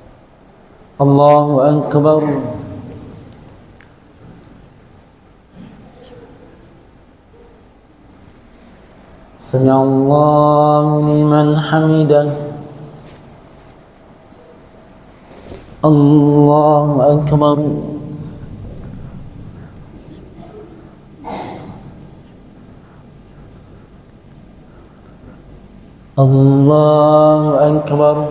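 A man chants loudly into a microphone, echoing in a large hall.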